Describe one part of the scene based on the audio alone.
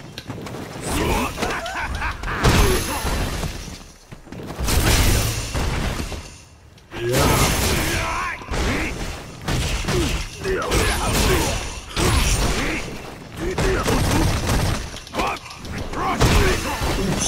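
Punches and kicks land with heavy, punchy thuds in a fighting video game.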